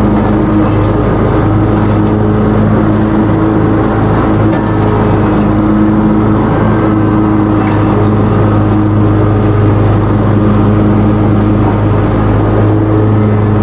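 A mower engine drones loudly and steadily close by.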